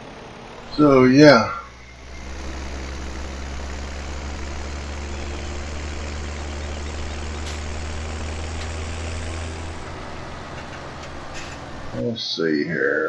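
A tractor engine rumbles steadily as it drives.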